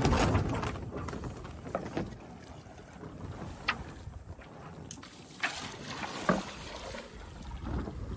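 Water rushes and splashes along a sailing boat's hull.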